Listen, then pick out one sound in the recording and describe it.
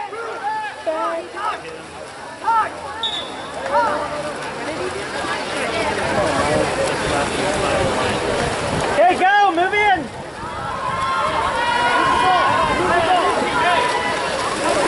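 Players splash through the water.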